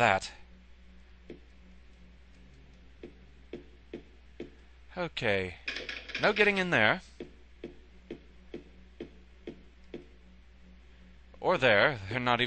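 Footsteps echo along a hard corridor floor.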